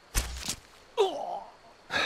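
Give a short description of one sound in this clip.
Water splashes at the surface.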